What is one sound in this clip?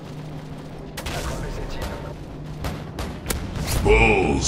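Heavy cannon fire thuds in bursts.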